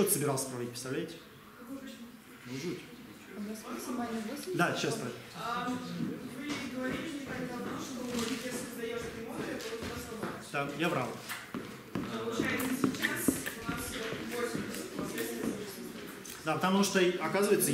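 A middle-aged man lectures calmly.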